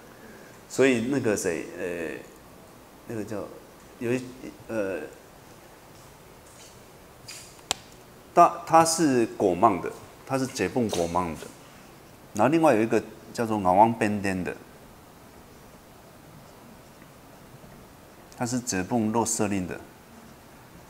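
A middle-aged man lectures calmly into a microphone, in short phrases with pauses.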